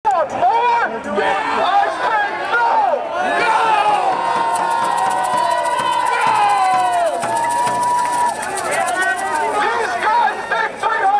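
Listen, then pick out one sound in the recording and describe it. A man shouts through a megaphone, loud and echoing.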